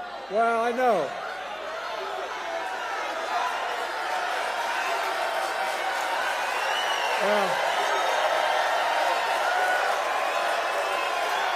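A large crowd cheers and chants outdoors.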